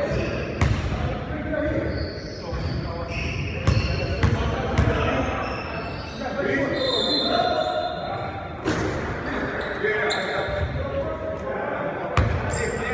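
Men talk and call out across the gym.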